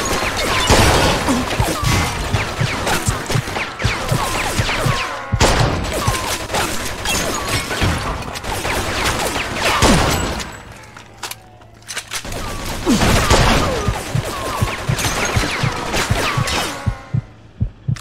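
Bullets ricochet with sharp whines.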